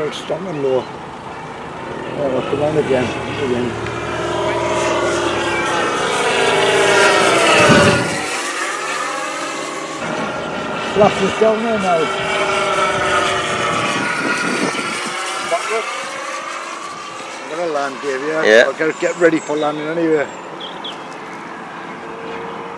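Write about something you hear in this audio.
A propeller plane engine roars overhead, swelling and fading as the plane passes.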